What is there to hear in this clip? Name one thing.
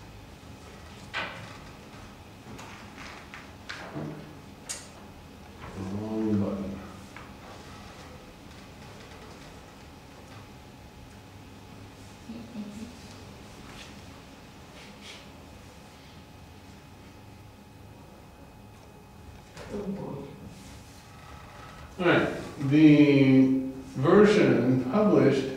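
An elderly man speaks calmly nearby, with pauses.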